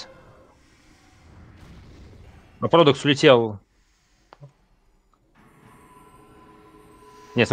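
Magic spells whoosh and crackle in a video game.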